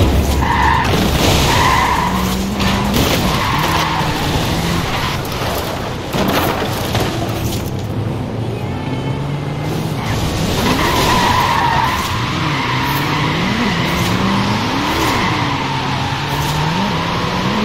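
Tyres screech as a car drifts across the ground.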